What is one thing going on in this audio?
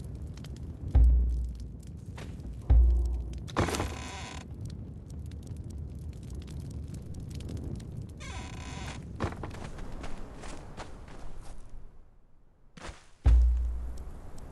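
Deep thuds boom as menus open.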